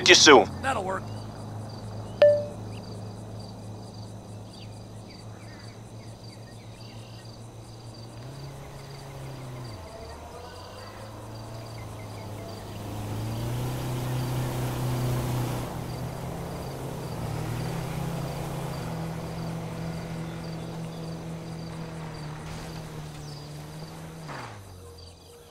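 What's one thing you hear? A vehicle engine idles with a low, steady hum.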